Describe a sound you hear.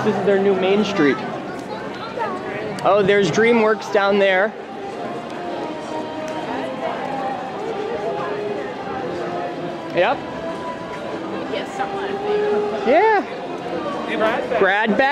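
A crowd of people chatters and murmurs outdoors.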